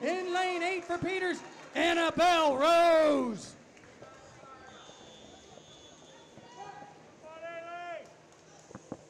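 Spectators shout and cheer loudly in a large echoing hall.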